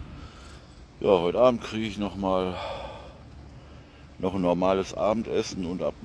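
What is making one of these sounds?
An elderly man speaks calmly, close to the microphone.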